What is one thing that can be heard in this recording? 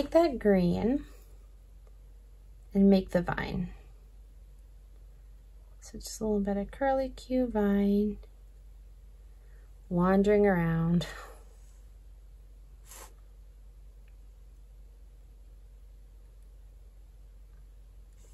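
A paintbrush swishes softly on paper.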